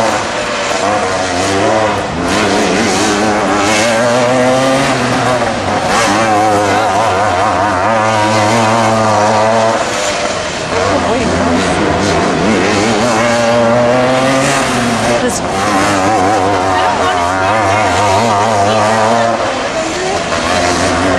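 A racing kart engine screams at full throttle, easing off in the turns, heard from a distance.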